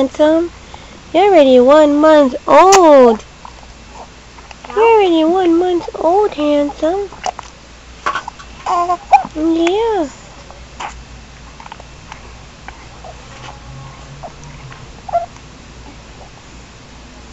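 A baby sucks and swallows from a bottle close by.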